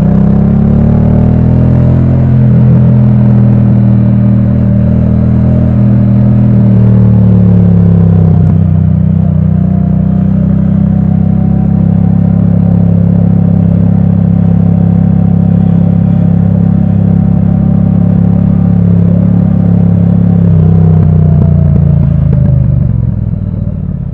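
Wind buffets the rider as the motorcycle rides along.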